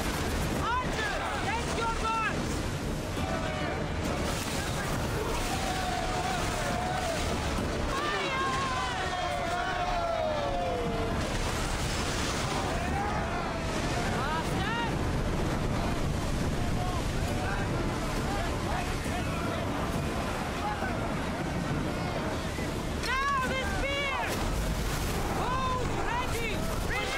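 Waves surge and crash against a ship's hull.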